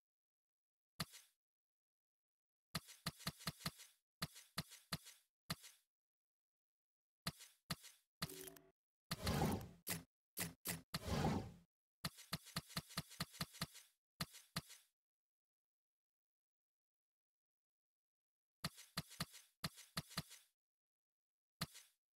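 Short electronic menu clicks tick in quick bursts.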